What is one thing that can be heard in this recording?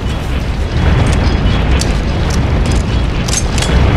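A rifle bolt clicks metallically during reloading.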